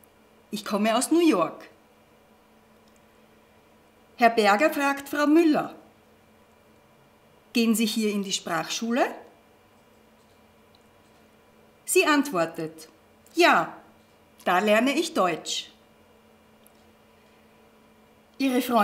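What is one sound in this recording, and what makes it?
A middle-aged woman speaks calmly and clearly into a close microphone, in short phrases with pauses.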